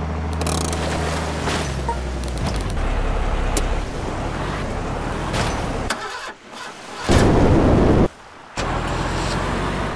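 Water splashes as a heavy truck plunges in.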